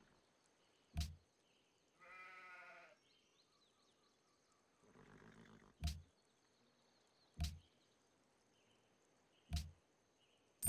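Game menu clicks sound.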